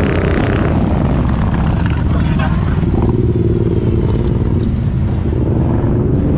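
Motorcycle engines rumble loudly close by.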